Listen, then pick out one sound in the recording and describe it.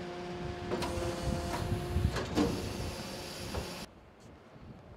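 A garbage truck's hydraulic machinery hums and whines.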